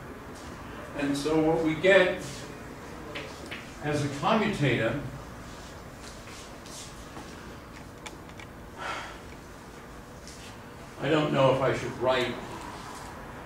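An elderly man speaks calmly in short phrases.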